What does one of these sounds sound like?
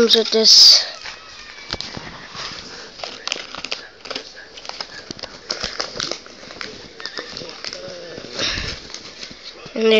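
Foil wrappers crinkle and rustle as hands sort through them.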